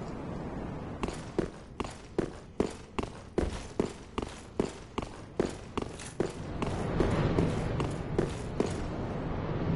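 Armoured footsteps clank quickly on stone steps.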